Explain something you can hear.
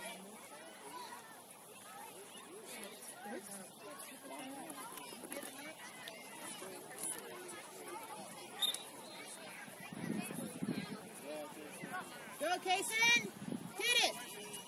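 Children shout and call out across an open field outdoors.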